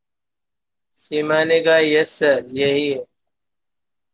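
A man speaks calmly and closely into a microphone over an online call.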